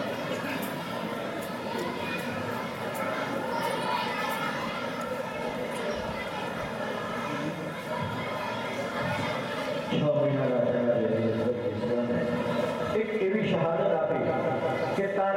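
A man chants loudly through a microphone and loudspeakers.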